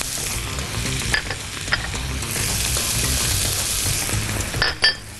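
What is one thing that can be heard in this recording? Vegetables sizzle steadily in a hot frying pan.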